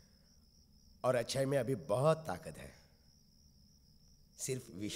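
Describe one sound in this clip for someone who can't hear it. A man speaks urgently and emotionally, close by.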